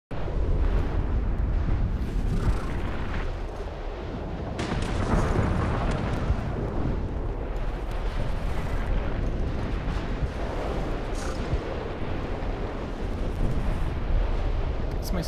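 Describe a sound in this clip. Lava bubbles and rumbles deeply in a volcano.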